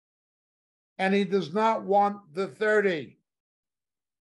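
An older man speaks calmly and close to a microphone.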